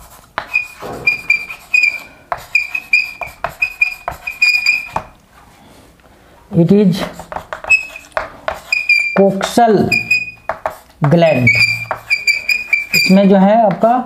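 Chalk taps and squeaks on a blackboard.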